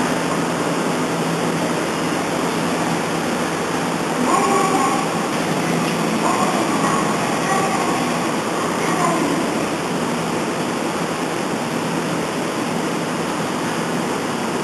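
An electric commuter train hums as it stands at a platform.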